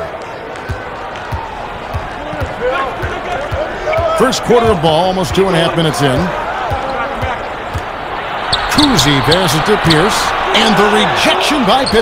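A basketball bounces on a hardwood court in steady dribbles.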